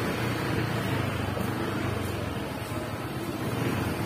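A car engine hums as a car drives slowly along the street.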